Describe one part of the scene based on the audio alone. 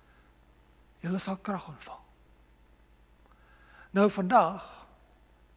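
A middle-aged man preaches with emphasis through a microphone in a reverberant hall.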